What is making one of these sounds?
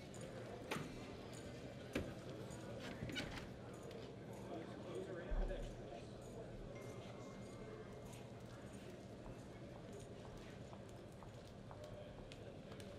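A horse's hooves thud softly on loose dirt.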